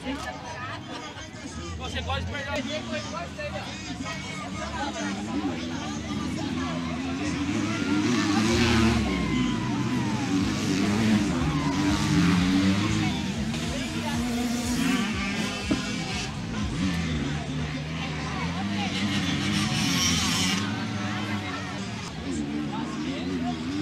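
Dirt bike engines rev and whine as motorcycles race past.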